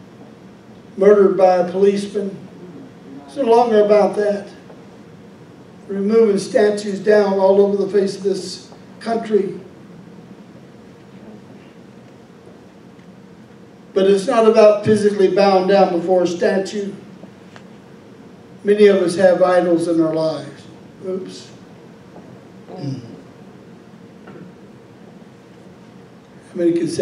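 A middle-aged man speaks calmly through a microphone in a large room, pausing between phrases.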